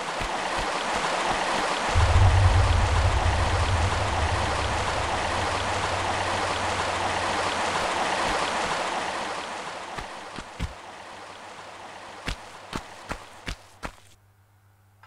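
Footsteps patter quickly on stone as a person runs.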